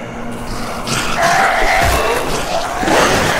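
A growling creature groans close by.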